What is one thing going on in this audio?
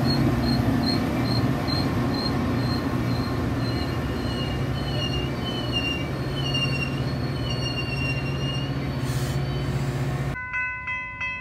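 A passenger train rumbles loudly close by.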